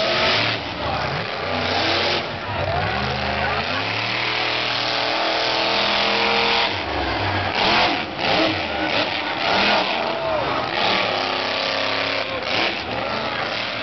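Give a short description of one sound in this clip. A monster truck engine roars loudly, revving up and down.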